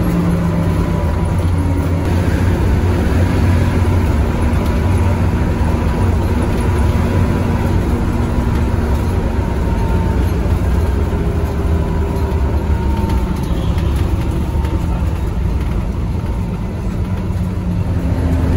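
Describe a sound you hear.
A bus engine rumbles steadily from inside the cab.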